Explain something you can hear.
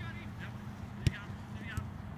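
A foot kicks a soccer ball with a thud.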